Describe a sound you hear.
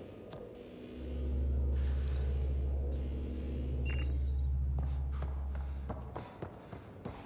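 A scanning device hums steadily with a low drone.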